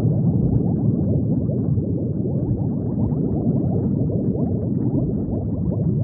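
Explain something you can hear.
Bubbles gurgle and pop steadily underwater.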